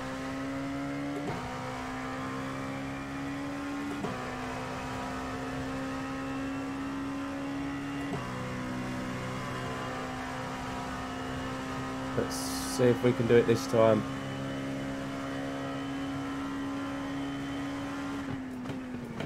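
A racing car engine drones at high revs, dropping in pitch briefly at each gear change.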